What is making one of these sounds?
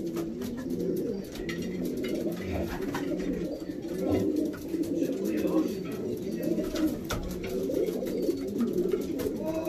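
Pigeon feet patter and scratch on a wooden floor.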